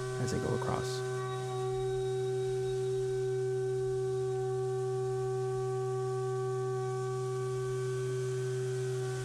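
A milling machine whines steadily as its cutter spins.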